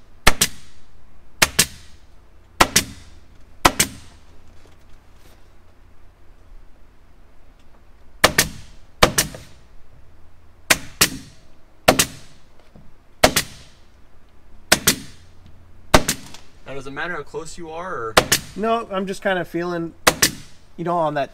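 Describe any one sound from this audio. A staple gun snaps sharply again and again.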